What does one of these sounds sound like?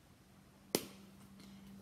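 A plastic case clicks sharply.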